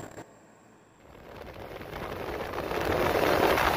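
Motorbikes ride past on a wet road, growing louder.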